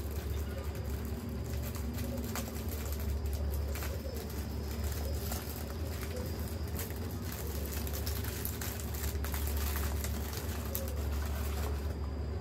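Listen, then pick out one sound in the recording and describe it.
Two women chew and munch food close up.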